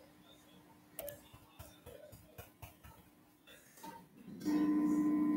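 An electric guitar is knocked and bumped as it is handled.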